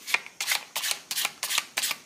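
A hand shuffles a deck of cards.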